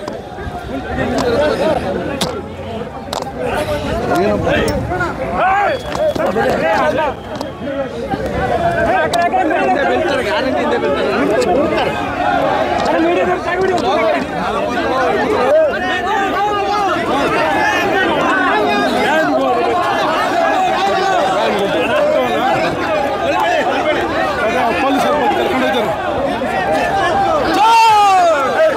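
A dense crowd of men talks and shouts over each other close by.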